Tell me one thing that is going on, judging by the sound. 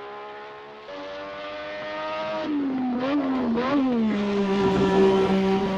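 A racing car engine roars closer, its pitch rising and dropping as it shifts gears.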